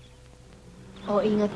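A young woman calls out from a short distance.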